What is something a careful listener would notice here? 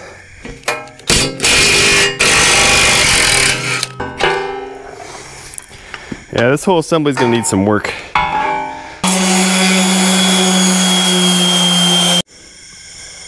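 A power tool whirs loudly against metal.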